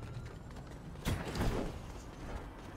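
A gun fires loud shots in a video game.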